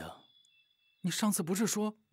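A young man answers with animation.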